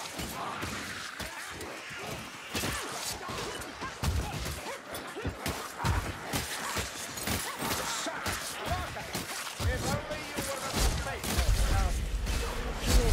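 Monsters snarl and growl in a frenzied crowd.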